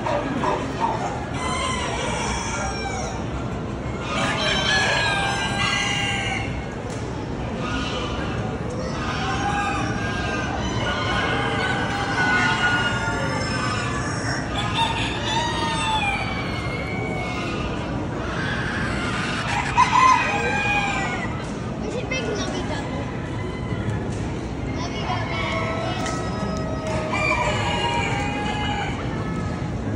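Many chickens cluck and squawk in a large echoing hall.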